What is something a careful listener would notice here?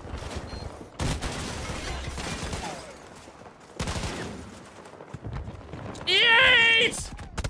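Gunfire cracks in bursts.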